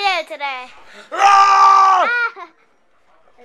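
A young man shouts with his mouth wide open, very close.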